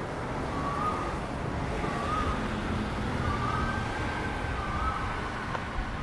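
A bus rumbles past with its engine droning.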